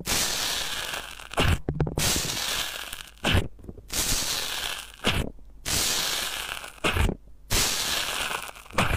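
Foam crackles and fizzes softly as a stick pokes into it.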